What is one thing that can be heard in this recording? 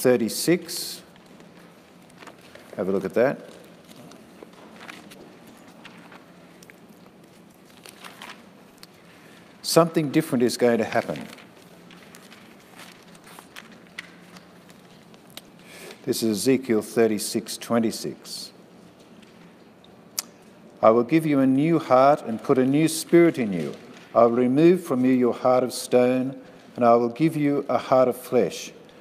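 An older man reads aloud calmly, with pauses, in a room with a slight echo.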